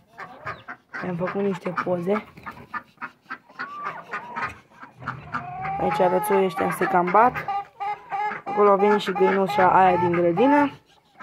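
Hens cluck and squawk close by.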